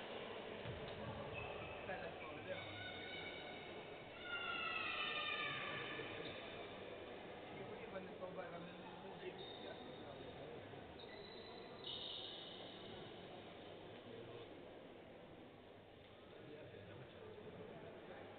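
Men talk quietly in a large echoing hall.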